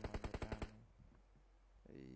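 A buggy engine revs.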